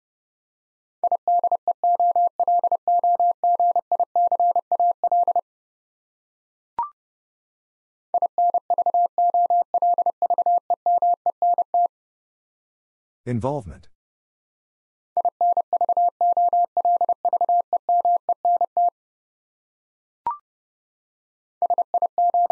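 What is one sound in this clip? A telegraph key taps out fast Morse code beeps in bursts.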